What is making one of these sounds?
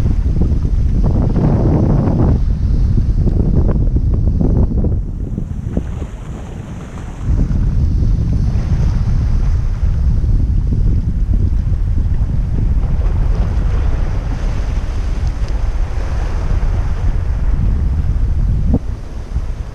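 Strong wind gusts and rumbles outdoors.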